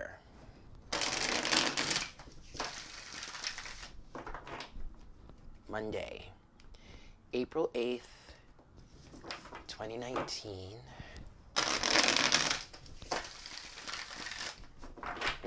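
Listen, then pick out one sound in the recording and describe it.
Playing cards riffle and whir as they are shuffled.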